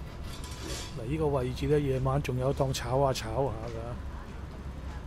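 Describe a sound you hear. An elderly man speaks close by.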